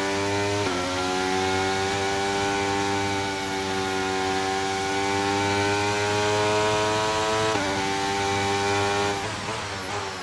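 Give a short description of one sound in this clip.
A racing car engine whines loudly at high revs.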